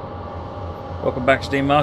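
A middle-aged man speaks close to a microphone.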